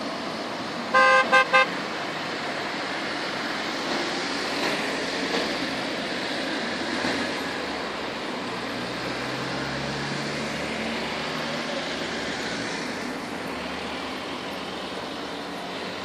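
A propeller plane drones far off.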